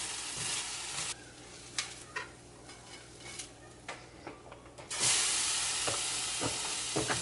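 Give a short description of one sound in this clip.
Food sizzles loudly in a hot frying pan.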